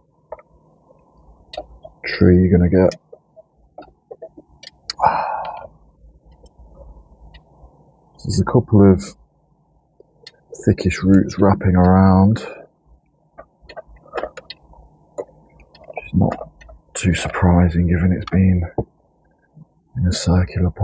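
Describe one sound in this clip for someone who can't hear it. A small tool scratches and rustles through loose soil and roots.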